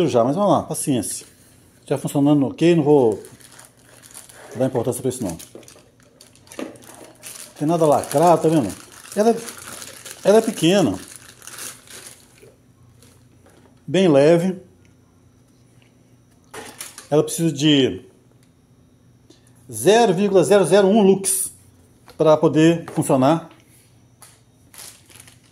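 A cardboard box scrapes and thumps as it is handled.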